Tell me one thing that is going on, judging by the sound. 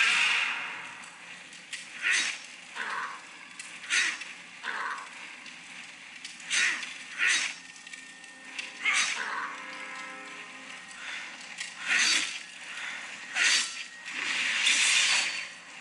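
Fighting sound effects whoosh and clash from a phone's speaker in quick bursts.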